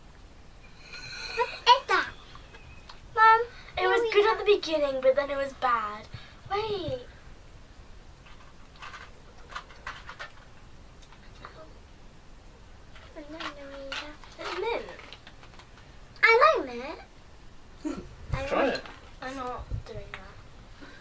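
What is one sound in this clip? A girl talks with animation close by.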